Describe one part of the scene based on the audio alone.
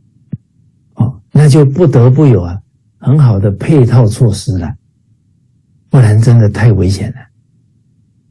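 A middle-aged man speaks calmly and warmly over an online call.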